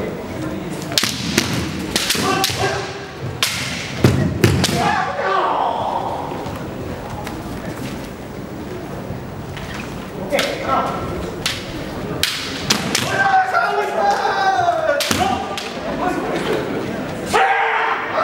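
Bamboo swords clack sharply against each other and against armour.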